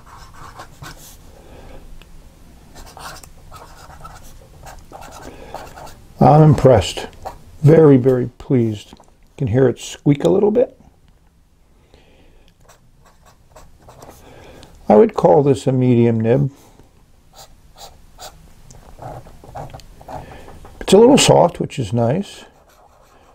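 A pen nib scratches softly on paper.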